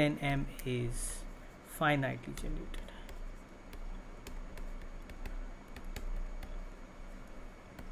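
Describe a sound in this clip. A pen taps and scratches on a writing tablet.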